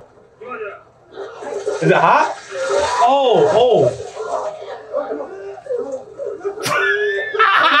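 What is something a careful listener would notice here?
A man shouts with animation close to a microphone.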